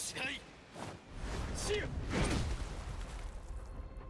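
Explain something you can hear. Two fists clash with a heavy impact.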